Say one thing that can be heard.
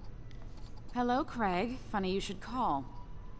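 A young woman speaks cheerfully on a phone, heard close.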